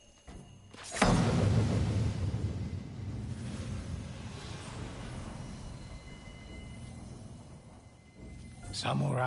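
A large drum booms with one deep, heavy strike that rumbles and slowly fades.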